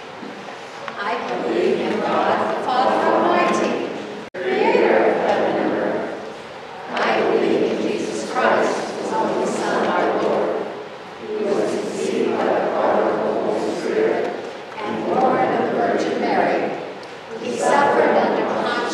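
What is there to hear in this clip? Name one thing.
A group of people recite together in unison.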